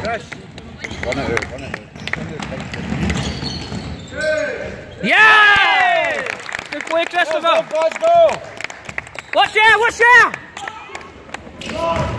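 Young players shout and call out in an echoing sports hall.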